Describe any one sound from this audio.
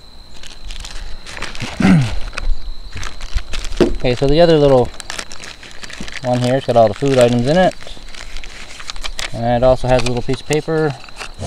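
Plastic packets crinkle and rustle as they are handled.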